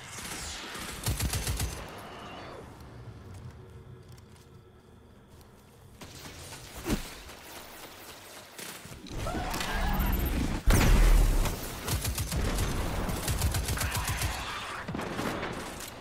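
Rifle gunfire cracks in bursts.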